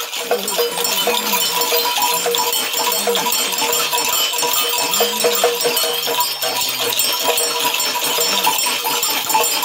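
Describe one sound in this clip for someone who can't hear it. A man shakes a gourd rattle rapidly.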